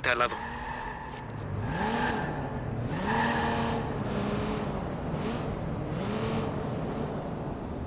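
A car engine revs repeatedly as a car drives off.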